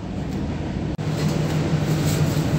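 A broom scrubs across a tiled floor.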